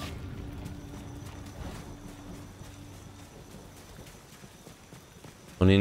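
Footsteps crunch on a damp forest path.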